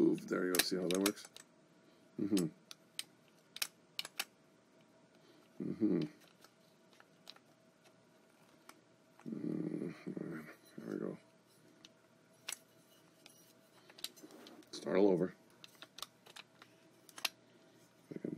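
A metal door latch clicks and rattles in the hands.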